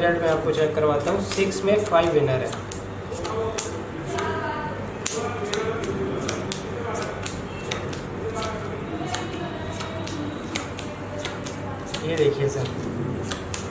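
Playing cards slap softly onto a table one after another.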